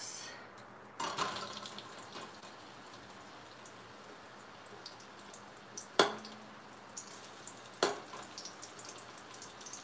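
Vegetables drop into a metal pot.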